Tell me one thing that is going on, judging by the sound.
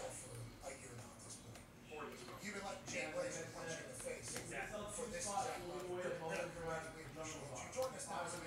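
Trading cards shuffle and flick against each other.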